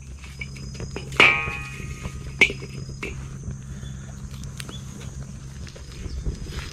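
A small fire crackles and pops.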